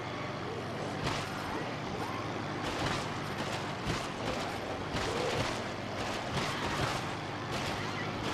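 An electric gun crackles and zaps in rapid bursts.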